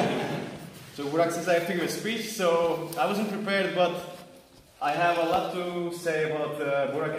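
A man speaks calmly to a group nearby.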